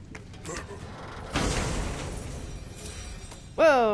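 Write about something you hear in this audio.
A heavy wooden chest creaks open.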